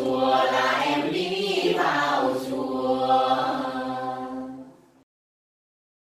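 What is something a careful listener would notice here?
A group of young men and women sing together.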